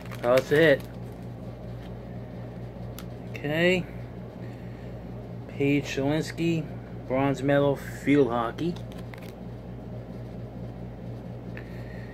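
Trading cards rustle and flick as they are shuffled through.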